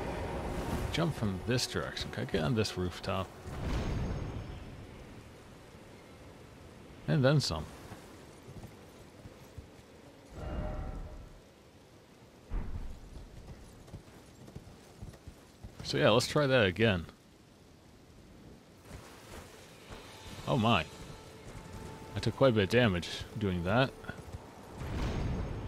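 A horse's hooves gallop over ground.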